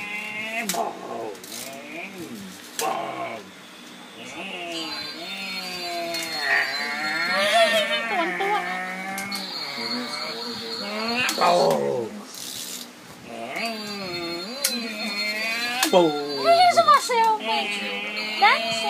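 An adult talks playfully to a baby close by.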